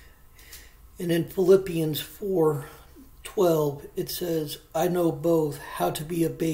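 A man reads out aloud, close to a microphone.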